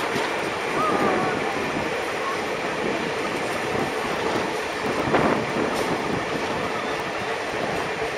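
A train rumbles and clatters steadily along the track.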